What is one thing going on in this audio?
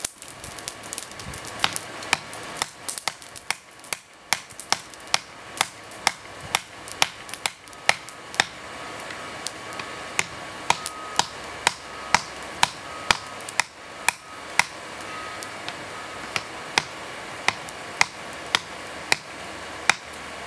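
A hammer strikes hot metal on a stone block with sharp, ringing clanks.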